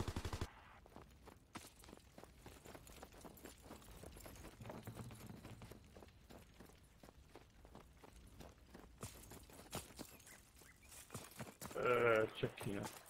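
Quick footsteps crunch through snow.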